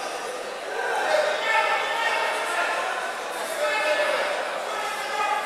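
A crowd of spectators cheers and shouts louder.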